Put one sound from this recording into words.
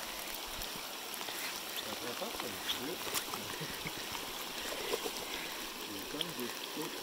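A shallow river rushes and babbles over stones outdoors.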